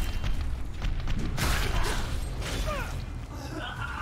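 A heavy hammer smashes into a monster with crunching blows.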